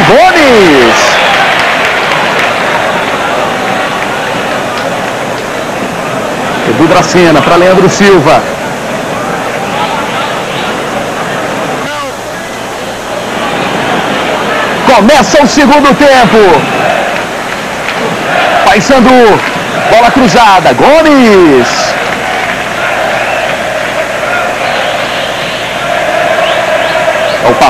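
A large crowd roars and chants throughout an open stadium.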